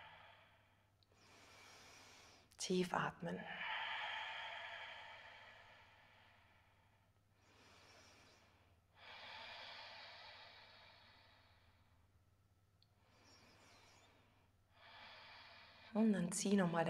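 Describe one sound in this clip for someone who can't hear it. A woman breathes out slowly and deeply.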